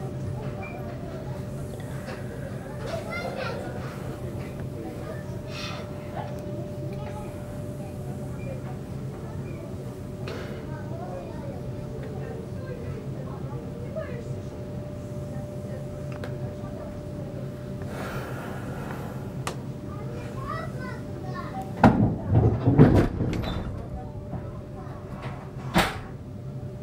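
A passenger train pulls slowly away, its wheels rumbling on the rails.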